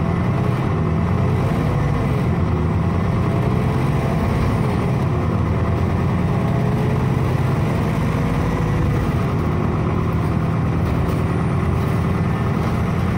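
A bus motor whines, rising and falling in pitch as the bus speeds up and slows down.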